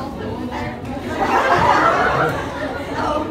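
A crowd of young people laughs and chatters.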